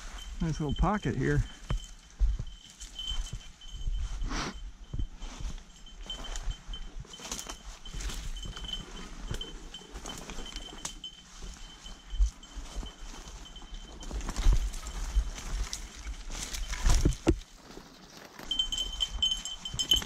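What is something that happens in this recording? Footsteps crunch through dry leaves and brush past twigs.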